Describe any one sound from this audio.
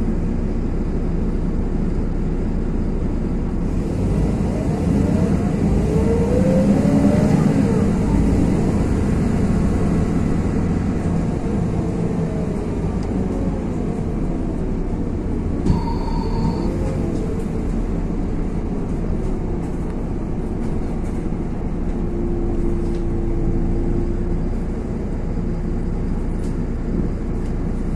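A vehicle's engine rumbles steadily from inside while it drives along.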